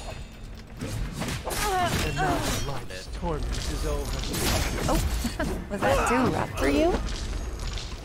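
Swords clash and whoosh in a game fight.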